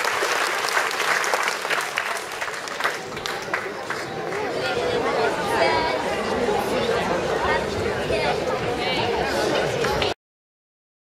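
Dancers' feet tap and shuffle on a wooden stage.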